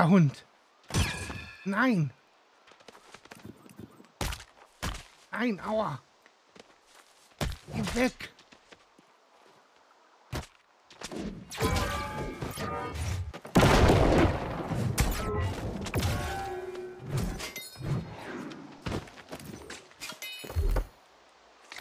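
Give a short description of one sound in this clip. A spear strikes with sharp thuds.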